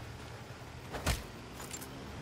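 A single loud gunshot cracks.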